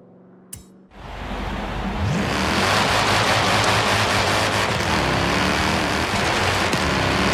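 A car engine revs and roars as the car speeds up.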